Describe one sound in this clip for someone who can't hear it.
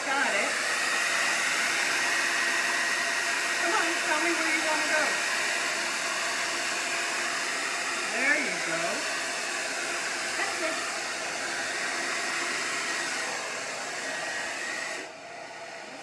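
A heat gun blows with a steady whooshing hum.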